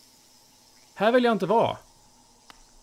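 A man speaks briefly with animation, close to a microphone.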